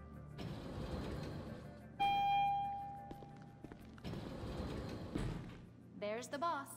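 Elevator doors slide with a low rumble.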